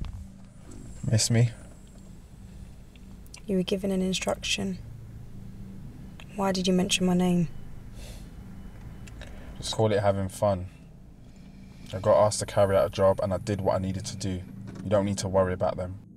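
A young man speaks close by, calmly.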